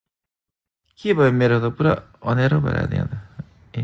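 A man talks over an online call.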